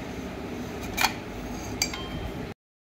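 A metal steamer tube knocks against a plate.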